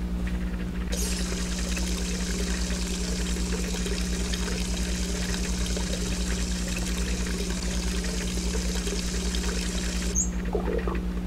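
Water runs from a tap and splashes into a basin.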